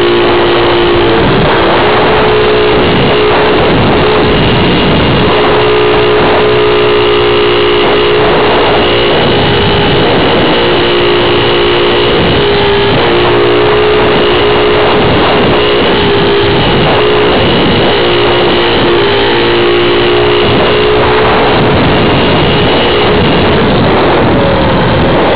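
A small electric propeller motor hums steadily up close.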